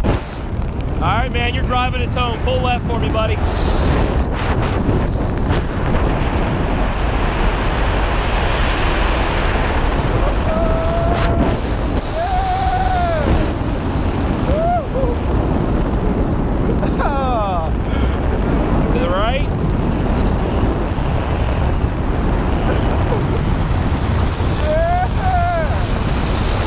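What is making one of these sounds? A young man shouts and whoops with excitement close by.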